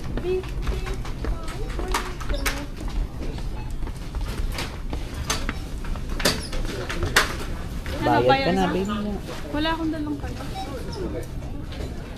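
Shoppers murmur in the background of a busy indoor space.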